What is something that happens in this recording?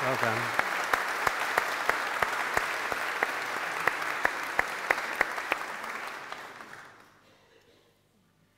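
A congregation applauds in a large echoing hall, then fades out.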